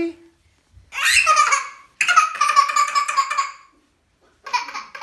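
A toddler cries loudly nearby.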